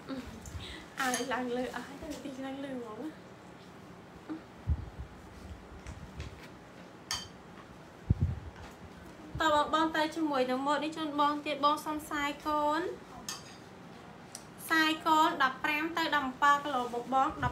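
A young girl speaks brightly and close by.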